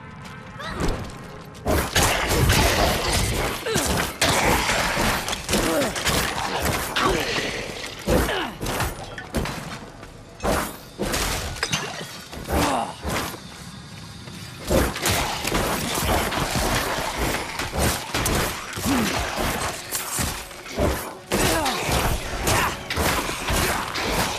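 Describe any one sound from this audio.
Weapons slash and strike monsters in quick, repeated hits.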